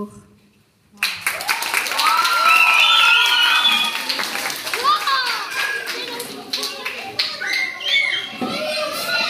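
A group of people clap their hands in applause.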